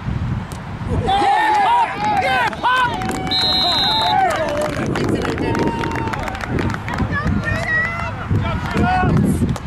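Young boys shout and cheer excitedly nearby, outdoors.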